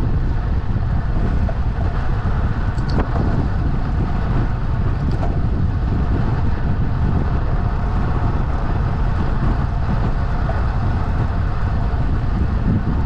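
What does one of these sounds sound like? Wind buffets the microphone steadily outdoors.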